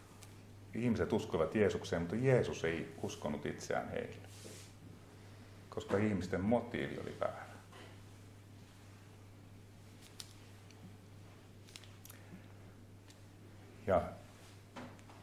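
A middle-aged man speaks calmly into a microphone, in pauses.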